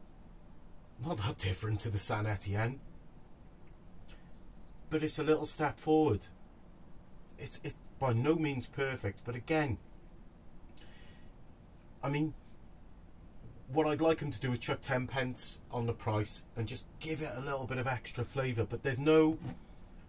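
A man talks calmly and close by, in short bursts.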